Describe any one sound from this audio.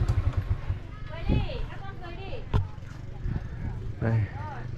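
Women and children chat nearby.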